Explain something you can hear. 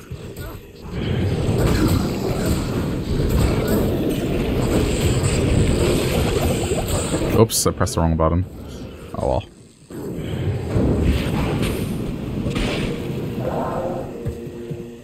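Magic spells burst with hissing whooshes.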